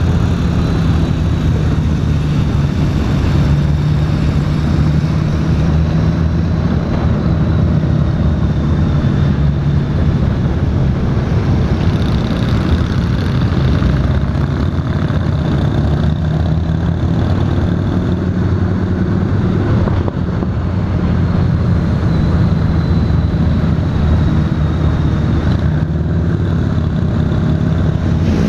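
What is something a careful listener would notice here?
A motorcycle engine rumbles steadily up close as it rides.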